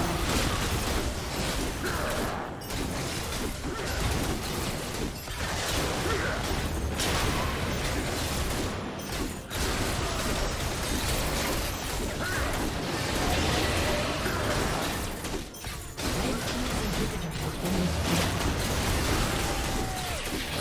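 Magic blasts and clashing weapons crackle and boom in a fast battle.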